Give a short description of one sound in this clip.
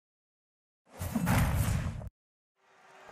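Flames roar in a sudden burst.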